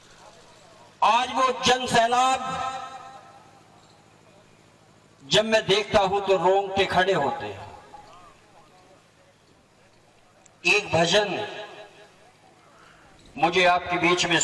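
A man speaks loudly in short bursts through an outdoor loudspeaker.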